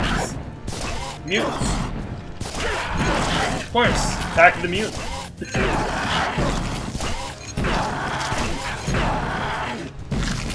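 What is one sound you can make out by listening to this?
Heavy blows thud and slash as a fighter strikes at monsters.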